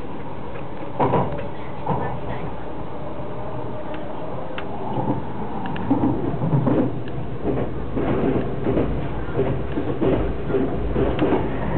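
Train wheels rattle and clack over rail joints.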